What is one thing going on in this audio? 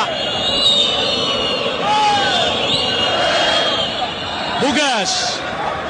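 A large crowd roars and chants in an open stadium.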